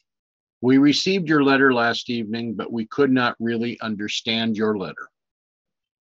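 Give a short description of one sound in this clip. An older man speaks calmly and closely into a microphone.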